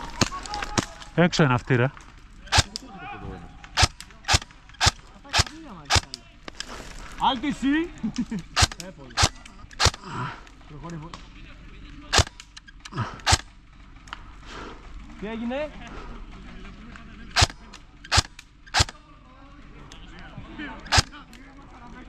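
A gun fires single shots in quick, uneven bursts outdoors.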